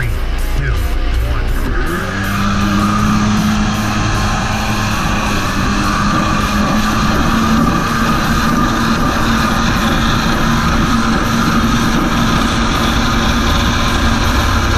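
A jet ski engine drones steadily and rises in pitch as it speeds up.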